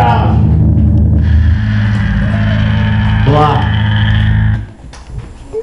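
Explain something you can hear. A drum kit is played loudly and fast, with booming bass drum and crashing cymbals.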